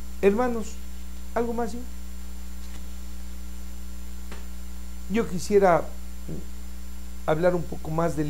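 An older man speaks calmly in short phrases, close to a microphone.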